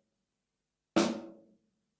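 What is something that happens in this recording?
A drumstick strikes a snare drum once.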